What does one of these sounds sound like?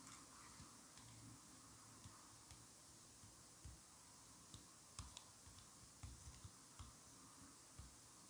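A blade scrapes and shaves a bar of soap with soft crisp scratches.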